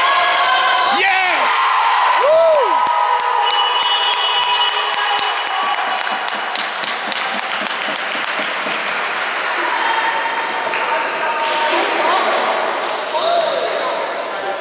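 Sneakers squeak sharply on a hardwood floor in a large echoing hall.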